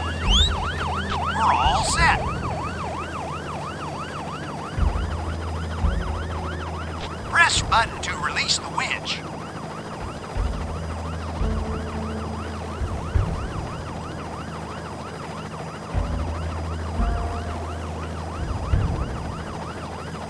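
A helicopter's rotor whirs and thumps steadily.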